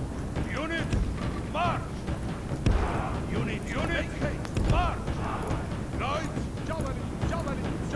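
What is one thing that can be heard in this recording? Soldiers march in step over open ground.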